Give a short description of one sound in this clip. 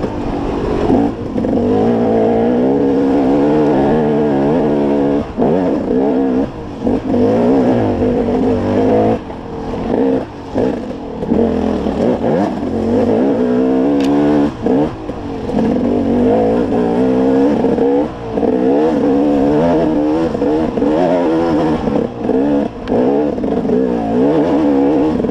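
Knobby tyres crunch over dry twigs and dirt.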